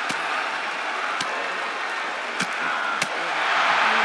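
Heavy thuds of bodies strike a wrestling mat.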